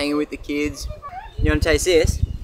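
A young child speaks in a high voice.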